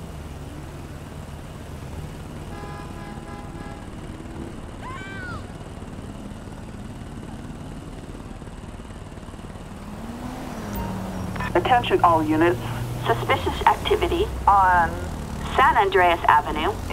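A motorcycle engine idles and hums steadily.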